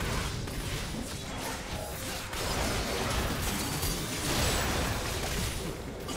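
Video game spells blast and crackle during a fight.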